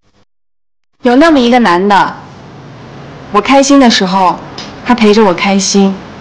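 A young woman speaks softly and close.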